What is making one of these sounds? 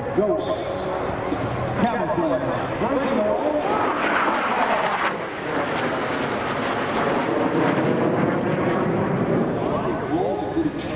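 Jet engines roar loudly overhead with a rushing, shifting pitch.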